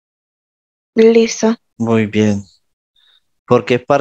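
A man speaks calmly through a headset microphone over an online call.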